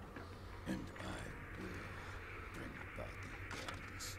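A man speaks in a low, grim voice.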